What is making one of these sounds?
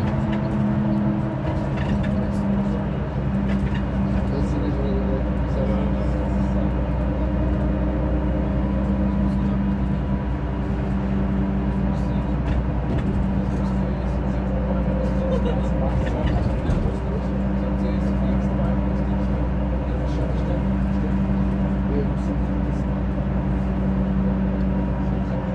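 Wheels clatter over the rail joints.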